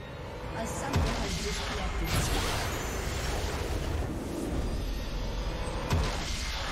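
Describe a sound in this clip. A triumphant fanfare swells up and rings out.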